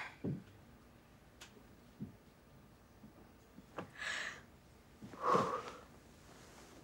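A young woman breathes heavily and gasps close by.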